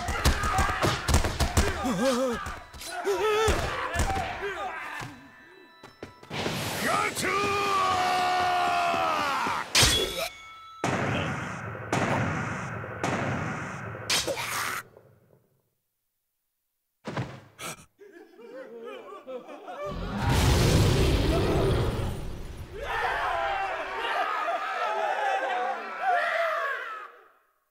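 A crowd of men yells and brawls.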